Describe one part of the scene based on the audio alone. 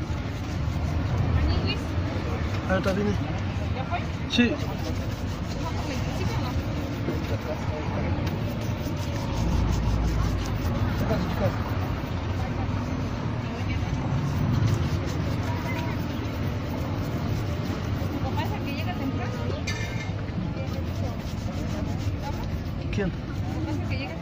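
A brush scrubs briskly back and forth over a leather shoe.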